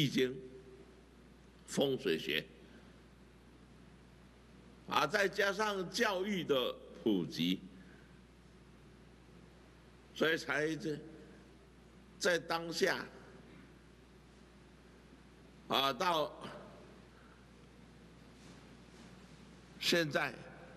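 An elderly man speaks slowly and firmly into a microphone, in short bursts with long pauses.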